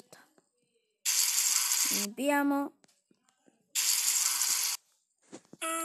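A water jet sprays in steady hissing bursts.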